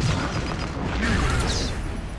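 An explosion bursts with crackling sparks.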